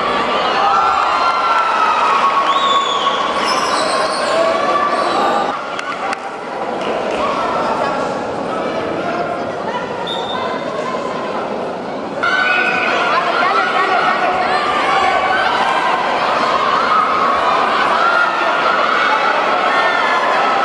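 A large crowd cheers and shouts, echoing in a big hall.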